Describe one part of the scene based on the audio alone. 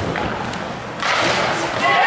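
A hockey stick shoots a puck on ice.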